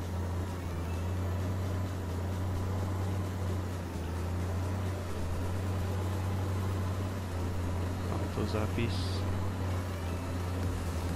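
A tractor engine drones steadily.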